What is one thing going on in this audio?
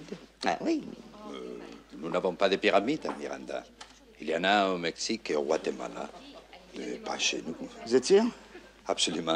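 An elderly man answers calmly close by.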